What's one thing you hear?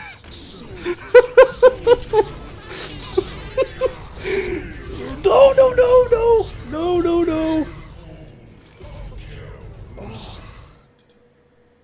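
A young man talks and laughs excitedly into a close microphone.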